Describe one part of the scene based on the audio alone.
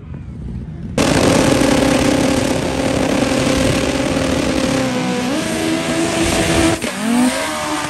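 A race car engine roars loudly at close range.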